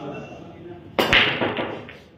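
A cue ball cracks hard into a rack of pool balls.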